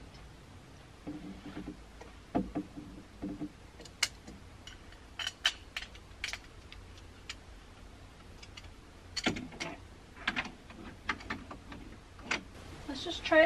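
Clothes hangers clack and rattle on a rail.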